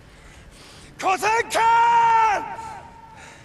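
A man shouts loudly and hoarsely, his cry held long.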